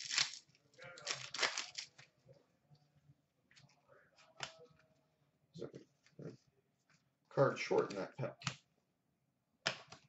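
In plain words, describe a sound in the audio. Trading cards flick and rustle against each other.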